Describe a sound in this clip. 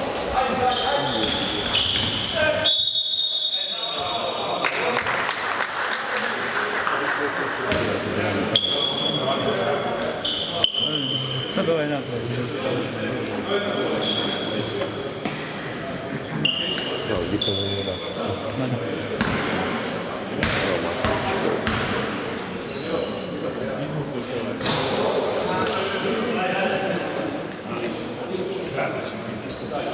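A crowd of spectators murmurs and chatters.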